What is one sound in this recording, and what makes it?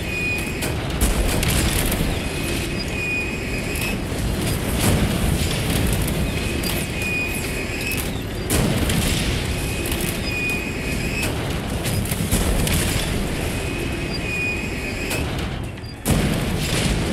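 A cannon fires with heavy, booming blasts again and again.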